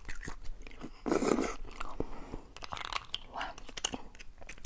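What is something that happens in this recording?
A young woman bites and chews food wetly close to a microphone.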